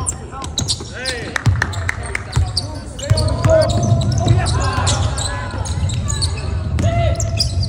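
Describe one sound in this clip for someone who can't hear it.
A basketball bounces on the floor with hollow thuds.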